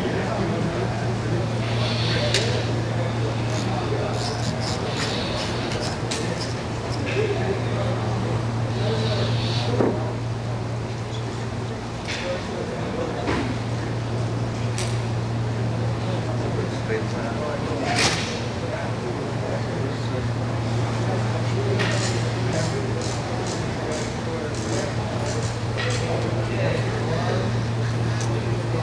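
A stiff cloth uniform rustles softly as a man moves slowly.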